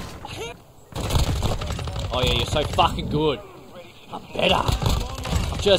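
Gunfire crackles from a game.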